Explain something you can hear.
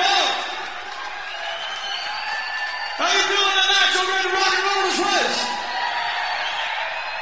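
A young woman sings loudly into a microphone.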